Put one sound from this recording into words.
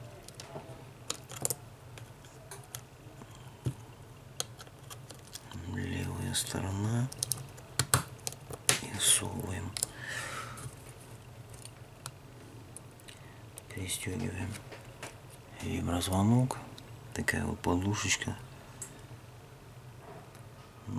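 Fingers click and tap against small plastic parts.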